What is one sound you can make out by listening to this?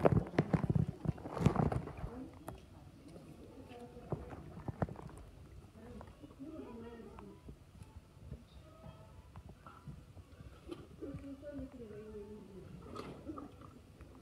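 A hippopotamus crunches and chews watermelon.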